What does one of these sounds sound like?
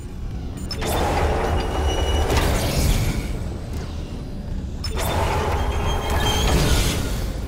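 Steam hisses loudly in bursts.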